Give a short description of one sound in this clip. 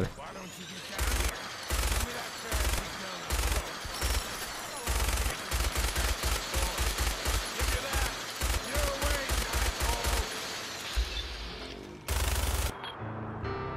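A heavy machine gun fires in loud rapid bursts.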